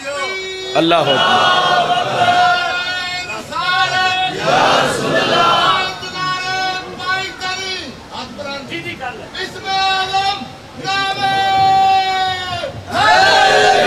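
A man chants loudly through a loudspeaker.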